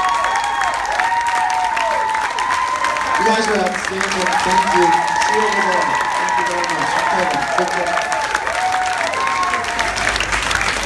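A crowd cheers and whoops loudly in a large room.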